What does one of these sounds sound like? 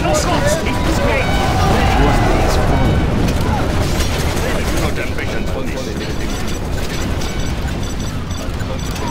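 Explosions boom and rumble heavily.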